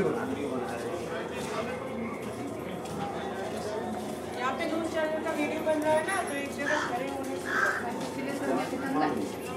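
A man talks nearby in a calm voice.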